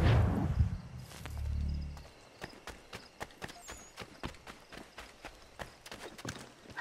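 Footsteps thud steadily on dirt and rock.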